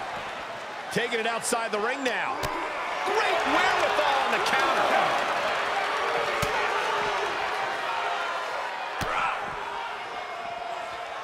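A crowd cheers in a large arena.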